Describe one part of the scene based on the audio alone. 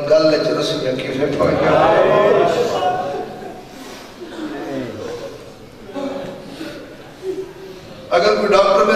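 A man recites loudly and with emotion into a microphone, heard through loudspeakers.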